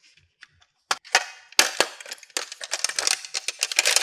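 A plastic case snaps shut.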